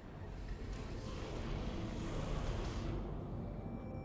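Flames roar loudly.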